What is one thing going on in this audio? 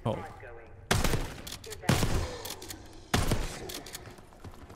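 Gunshots bang loudly.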